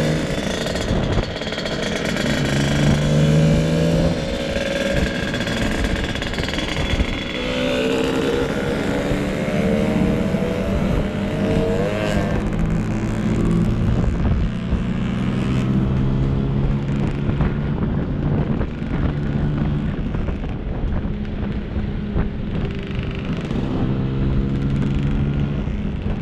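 A scooter engine hums steadily up close, rising and falling in pitch as it speeds up and slows.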